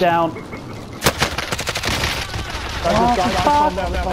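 A rifle fires sharp shots close by.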